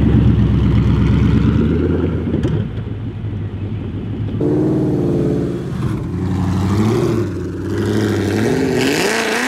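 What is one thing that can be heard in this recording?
A sports car engine idles with a deep, lumpy burble.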